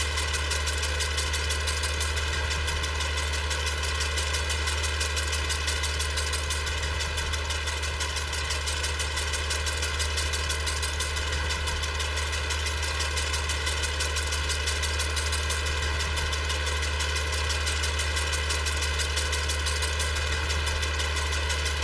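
A mower blade whirs through grass.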